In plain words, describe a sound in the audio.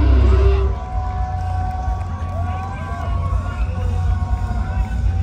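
A rock band plays loudly through big outdoor speakers, with heavy bass.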